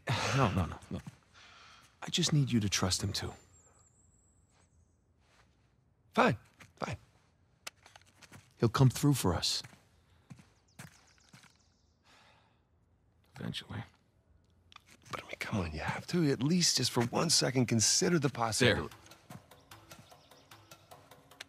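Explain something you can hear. A man speaks earnestly, close by.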